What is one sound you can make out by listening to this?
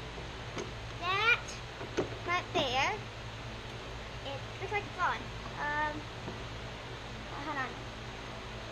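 A young girl talks and laughs close by.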